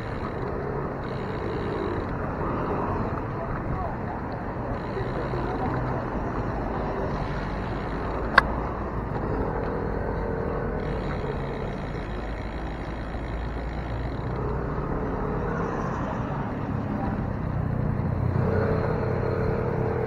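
Wind rushes steadily past a moving bicycle outdoors.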